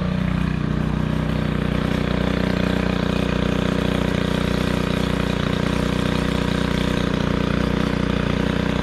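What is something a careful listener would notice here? A string trimmer engine drones loudly and steadily close by.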